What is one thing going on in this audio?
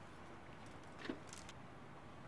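A small metal weight clicks down onto a plastic cart.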